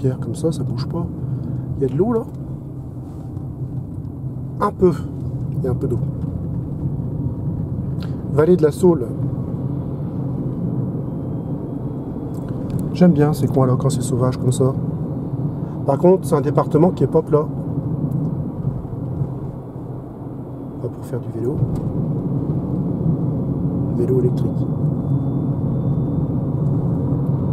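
A car's tyres and motor rumble steadily from inside the cabin.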